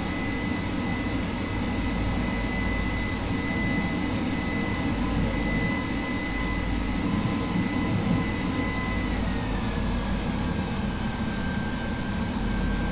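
The turbofan engines of a twin-engine jet fighter roar, heard from inside the cockpit.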